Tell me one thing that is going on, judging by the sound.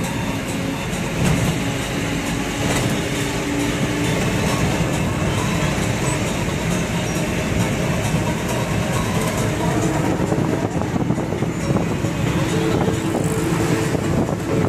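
A car engine hums steadily from inside the moving car.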